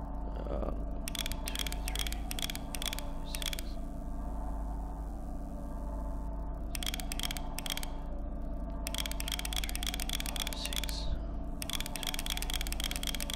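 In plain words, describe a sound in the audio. A safe's combination dial clicks rapidly as it turns.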